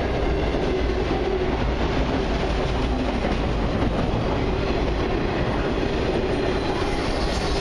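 A long freight train rumbles past.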